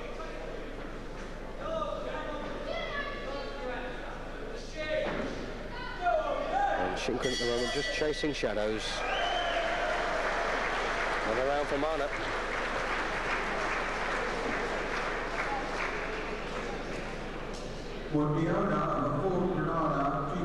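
Men in a crowd shout and call out in a large echoing hall.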